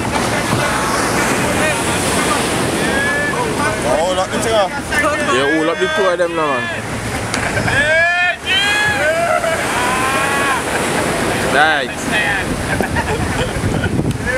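Waves break and wash onto a nearby shore.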